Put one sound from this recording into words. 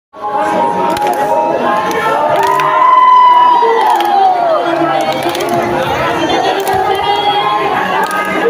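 Young women sing together through loudspeakers.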